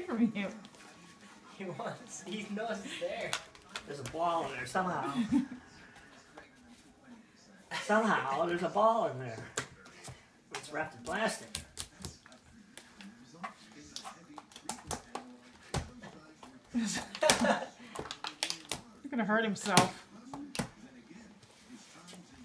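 A dog's plastic toy scrapes and clatters on the floor.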